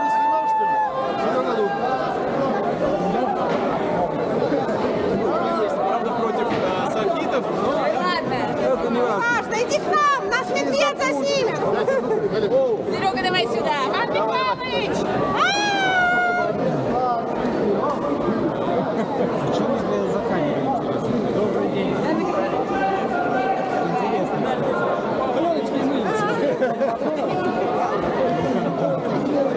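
A large crowd of men and women chatters loudly all around in an echoing hall.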